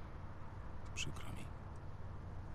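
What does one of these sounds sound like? A man speaks a few quiet words.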